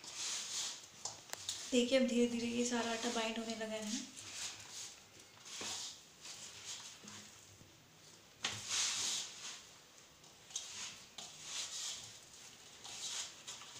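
Hands knead sticky wheat dough in a metal bowl, squelching and rustling.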